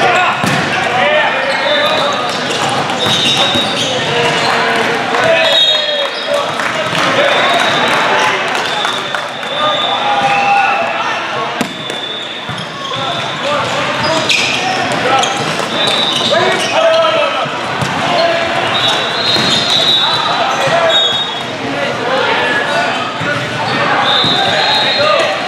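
A volleyball is struck with loud slaps.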